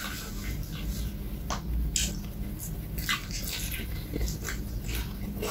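A man slurps noodles loudly and close to a microphone.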